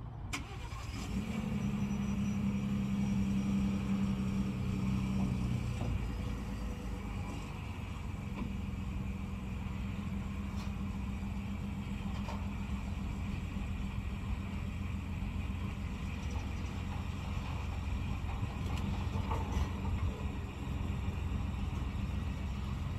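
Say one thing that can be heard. A pickup truck's engine hums low and steady.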